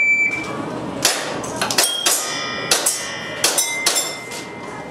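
A pistol clicks sharply several times in quick succession.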